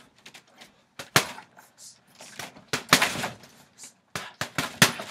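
Punches thud hard and quickly against a heavy punching bag.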